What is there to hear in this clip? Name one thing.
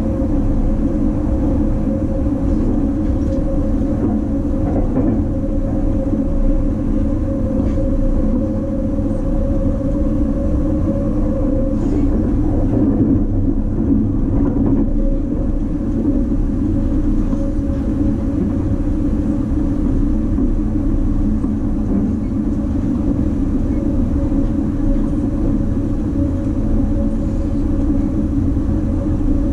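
A train's motor hums with a steady low drone.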